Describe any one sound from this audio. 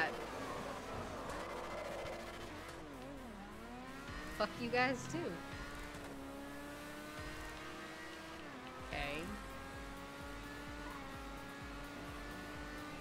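A racing car engine hums steadily and changes pitch as the car speeds up and slows.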